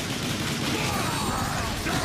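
Futuristic guns fire in short bursts.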